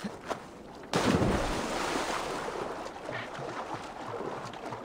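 Water sloshes steadily with swimming strokes.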